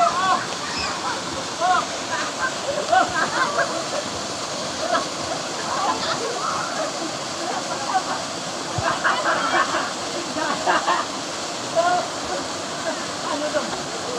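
Boys splash as they swim in the water.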